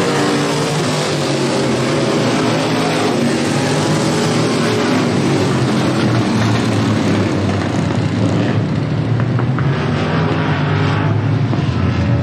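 Race car engines roar loudly as the cars speed around a dirt track.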